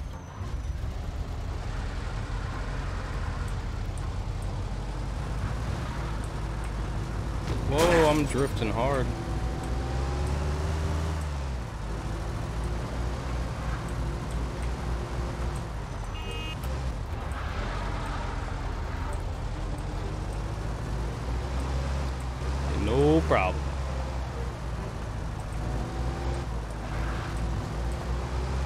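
A car engine hums steadily and revs now and then.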